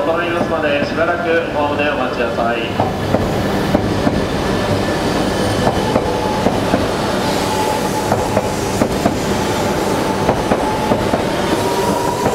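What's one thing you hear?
A train rumbles past close by.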